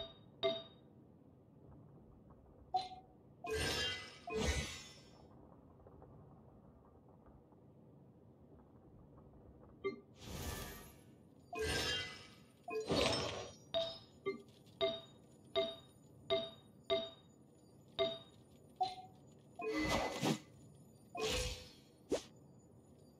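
Short chiming menu clicks sound now and then.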